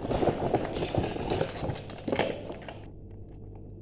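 Plastic toy pieces rattle and clatter close by.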